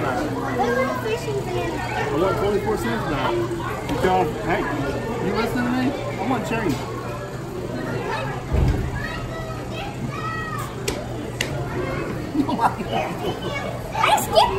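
A young boy talks excitedly.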